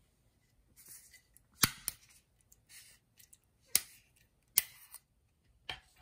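A metal bottle cap clicks and crackles as it is twisted open.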